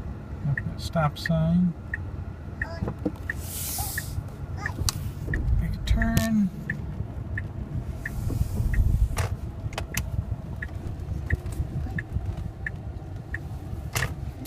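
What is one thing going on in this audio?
A turn signal ticks steadily.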